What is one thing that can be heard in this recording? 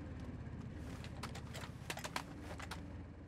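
A rifle bolt clicks and clacks as it is worked back and forth.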